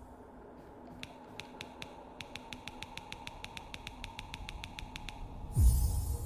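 Coins tick rapidly and evenly as a tally climbs.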